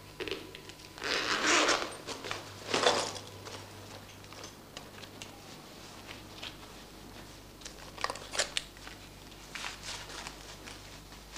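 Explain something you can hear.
Fabric rustles as clothes are packed into a bag.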